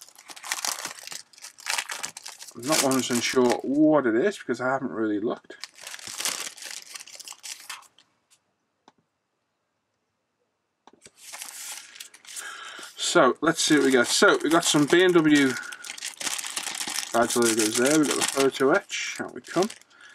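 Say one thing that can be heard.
A plastic sleeve crinkles and rustles as it is handled.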